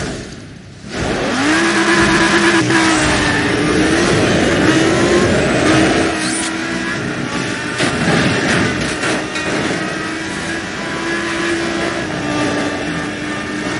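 A sports car engine roars loudly as the car launches and speeds up.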